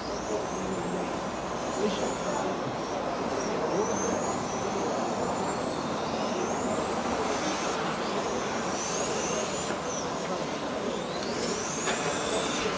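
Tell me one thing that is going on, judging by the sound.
Small electric model cars whine past at speed, their pitch rising and falling.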